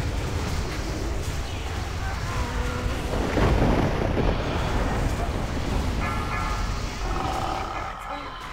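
Spells crackle and weapons clash in a fierce fantasy battle.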